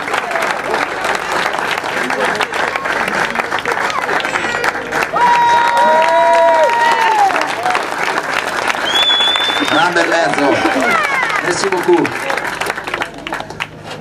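A crowd applauds outdoors.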